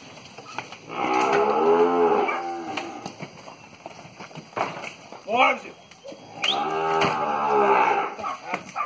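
Cattle moo loudly nearby.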